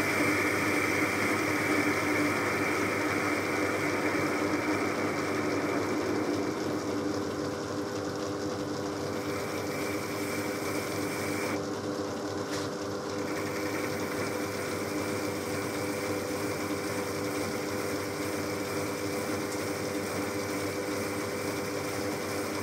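A lathe hums steadily as it spins.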